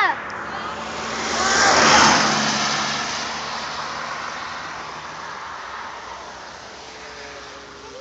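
A van drives past on the road and fades away.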